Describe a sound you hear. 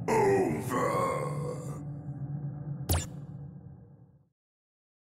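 A monster growls deeply.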